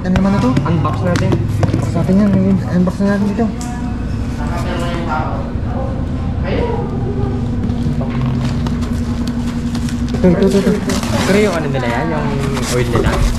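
Hands rub and tap a cardboard box.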